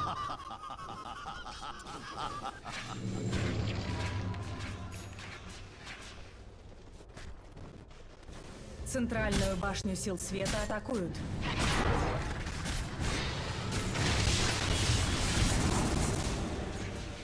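Game spells whoosh, crackle and clash during a fight.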